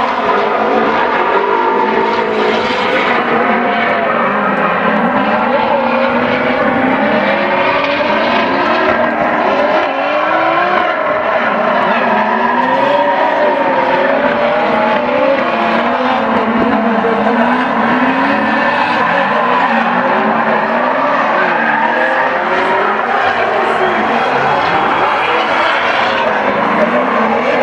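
Car engines roar and rev hard throughout.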